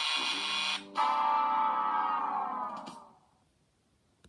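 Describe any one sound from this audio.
An electronic jingle plays and slowly fades away.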